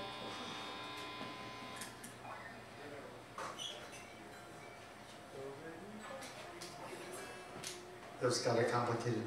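An electric guitar plays a few quiet notes.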